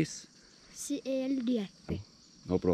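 A boy speaks close by.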